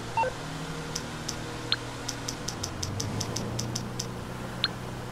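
A phone's buttons click in quick taps.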